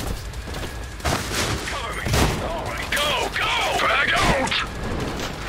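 Guns fire in sharp bursts of shots.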